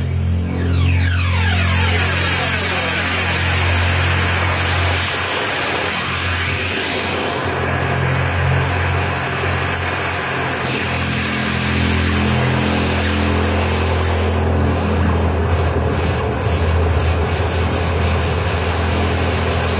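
Electronic music plays loudly with a deep steady drone and sweeping noisy textures.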